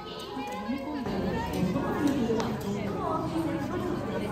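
A crowd of people murmurs and chatters in a large echoing hall.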